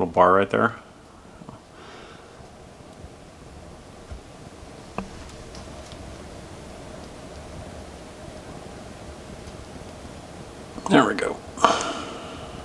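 Small plastic parts click and rustle softly as hands fit them together.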